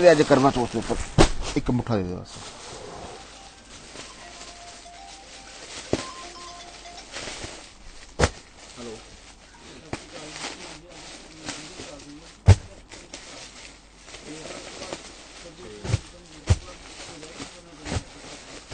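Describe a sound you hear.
Plastic packets rustle and crinkle as they are handled.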